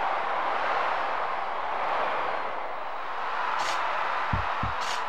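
A crowd roars steadily in a large arena.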